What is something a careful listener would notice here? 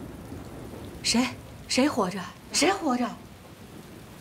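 A young man speaks in a startled, urgent voice.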